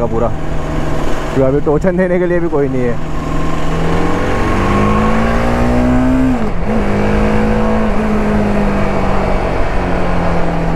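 A motorcycle engine drones up close, rising in pitch as it speeds up and dipping briefly between gears.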